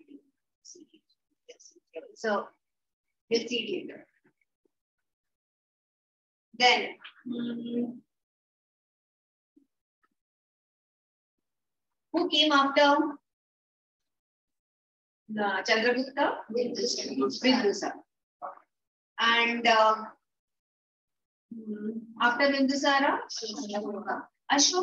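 A woman speaks calmly and clearly close to a microphone, in short bursts with pauses.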